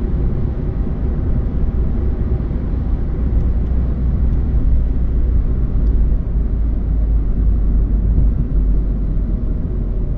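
A car drives steadily along a highway, with a low road rumble heard from inside.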